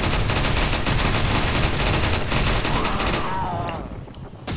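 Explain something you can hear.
A submachine gun fires a rapid continuous burst.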